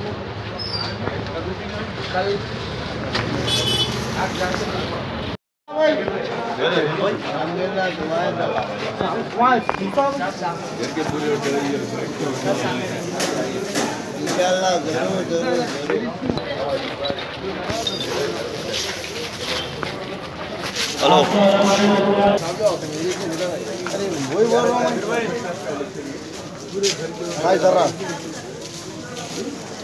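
Several men talk over one another.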